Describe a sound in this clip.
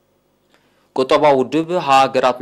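A young man speaks calmly into a microphone, reading out.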